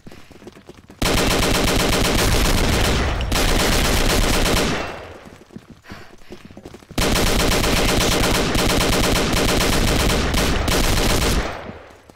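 An automatic rifle fires in long, rapid bursts.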